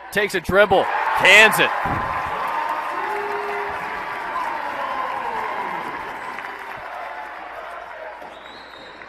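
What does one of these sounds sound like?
A large crowd cheers loudly in an echoing hall, then the cheering slowly fades.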